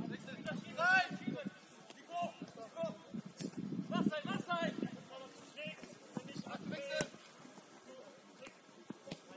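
Young men shout and call to each other across an open pitch outdoors.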